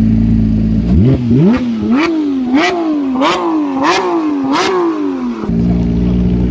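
A sports car engine revs sharply up and down several times.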